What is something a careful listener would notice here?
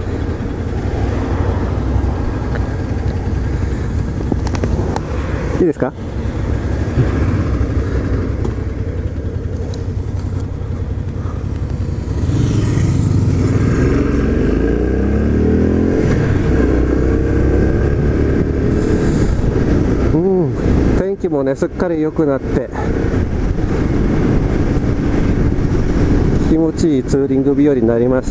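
Wind buffets loudly past a moving rider.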